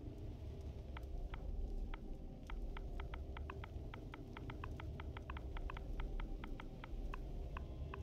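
Soft, quick clicks tick in a steady run.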